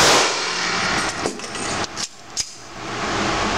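A pistol magazine clicks as it is swapped.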